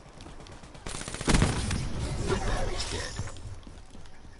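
Gunfire crackles in a loud burst.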